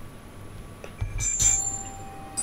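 A bright game chime sounds.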